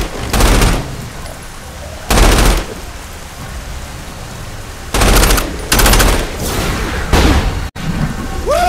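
Loud blasts and explosions boom in bursts.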